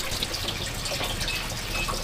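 Chopsticks rustle through soft cooked cabbage leaves.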